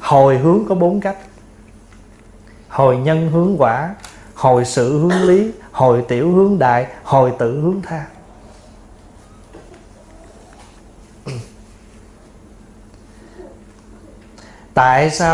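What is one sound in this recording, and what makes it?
A middle-aged man speaks calmly and steadily into a microphone, with pauses.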